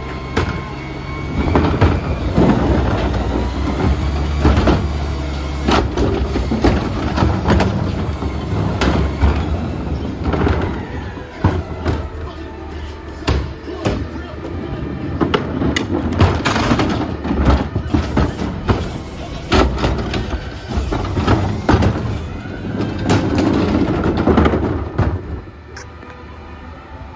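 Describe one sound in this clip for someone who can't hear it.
A garbage truck engine rumbles steadily nearby.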